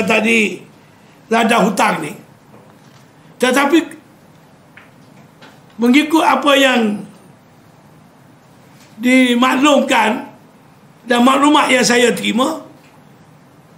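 An elderly man speaks forcefully into microphones, in short bursts with pauses.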